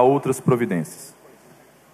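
A young man reads out through a microphone.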